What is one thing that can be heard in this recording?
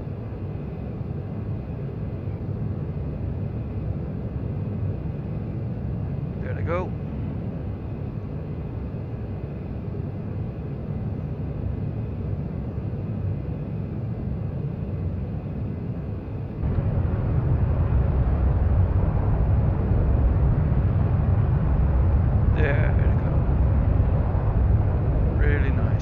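A jet engine roars steadily in a deep rumble, growing louder partway through.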